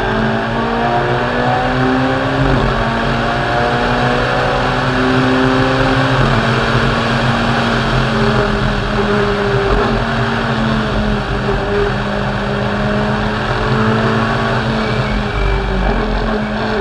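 A rally car engine roars loudly close by, its pitch rising and falling with gear changes.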